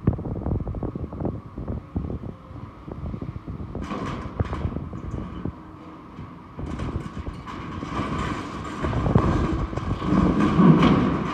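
An excavator engine rumbles steadily outdoors.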